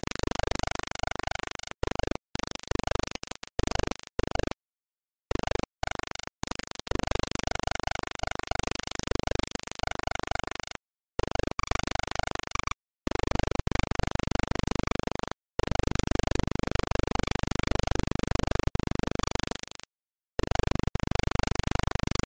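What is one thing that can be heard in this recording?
Rapid electronic blasts fire over and over.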